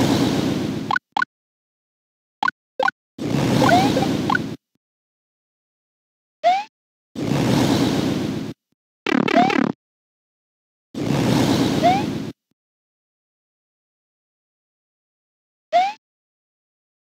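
A game jump sound chirps upward.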